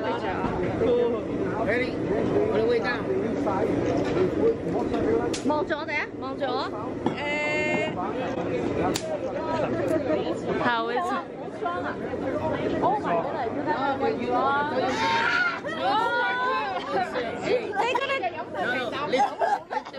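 Two young women talk and laugh close by.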